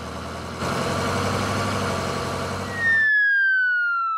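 A truck engine rumbles.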